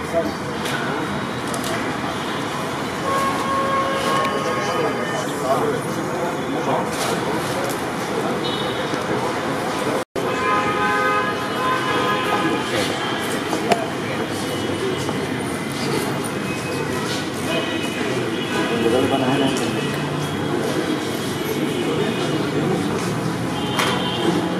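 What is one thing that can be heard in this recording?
A crowd of men chatter all around.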